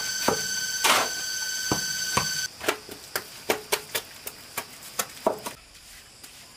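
A steel shovel scrapes and slaps wet cement mortar on concrete.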